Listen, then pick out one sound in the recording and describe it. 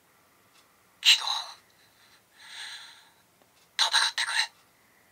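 A toy belt buckle plays short electronic sound effects.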